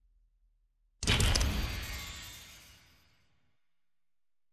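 A game menu plays a loud whooshing confirmation sound that fades away.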